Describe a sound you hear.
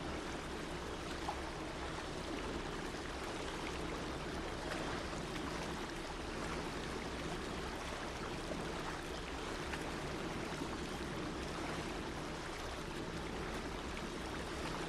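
Water splashes and churns behind a paddle wheel.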